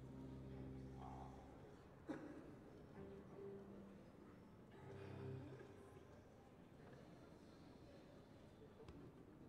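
An orchestra plays sustained string chords in a large echoing hall.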